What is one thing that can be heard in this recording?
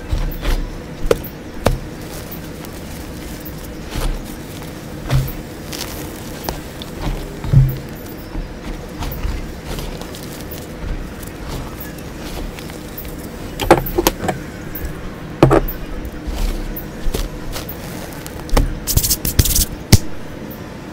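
Chunks of chalk thud and crumble as they drop into a pile of powder.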